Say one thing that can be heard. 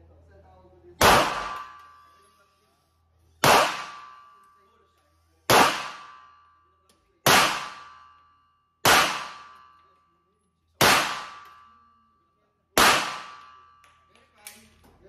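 A pistol fires loud single shots, each ringing off in a small hard room.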